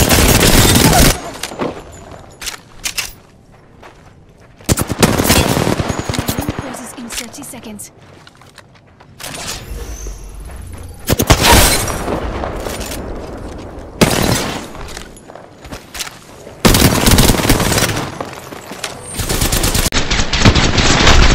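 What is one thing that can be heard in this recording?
Rapid gunfire rattles in loud, short bursts.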